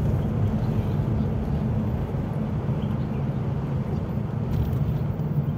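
A car engine rumbles steadily from inside the car as it drives along a road.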